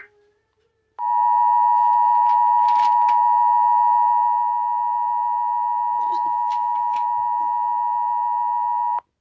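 A steady electronic tone drones on without a break.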